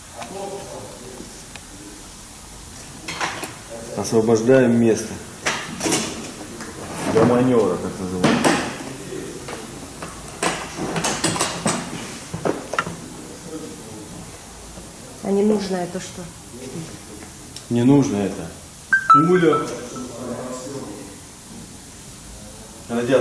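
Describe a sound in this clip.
A man speaks calmly to the listener, close by.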